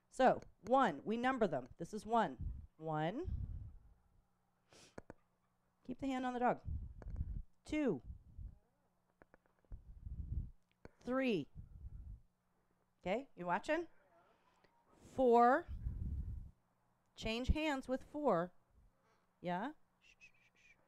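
A middle-aged woman speaks calmly through a microphone, in short phrases with pauses.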